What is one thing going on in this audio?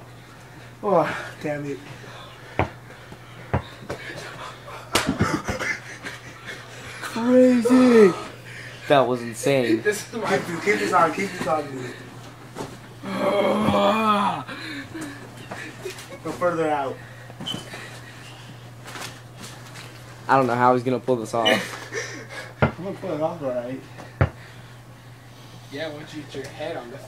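A young man talks and shouts excitedly close by.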